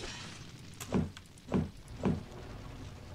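A building collapses with a crash.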